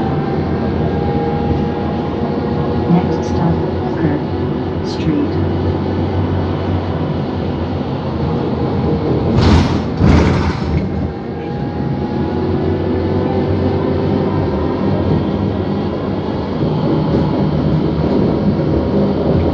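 Tyres roll on the road beneath a moving bus.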